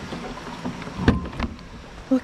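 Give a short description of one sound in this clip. A car door latch clicks open.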